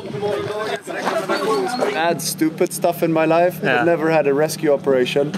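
Men talk and laugh together nearby, outdoors.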